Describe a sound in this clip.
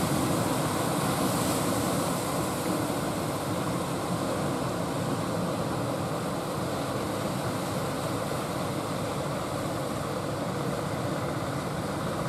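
Waves break and wash onto the shore.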